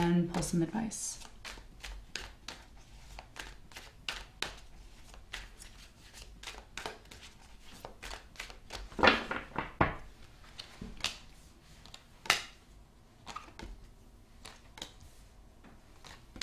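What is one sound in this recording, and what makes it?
Cards are shuffled and tapped with crisp clicks.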